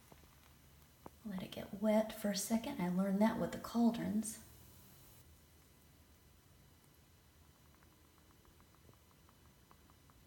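A bath bomb fizzes and crackles softly in water.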